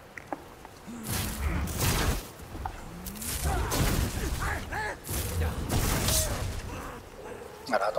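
A blade swings through the air with heavy whooshes.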